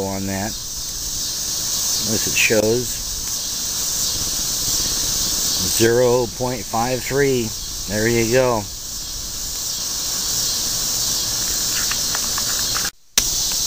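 A radio hisses with steady static.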